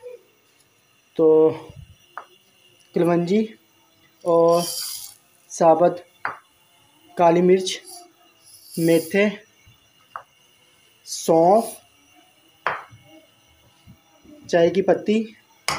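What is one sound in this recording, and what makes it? Dry seeds and spices patter into a metal pot.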